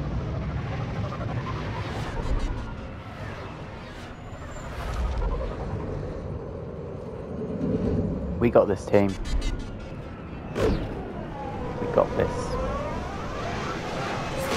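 Spacecraft engines rumble and roar overhead.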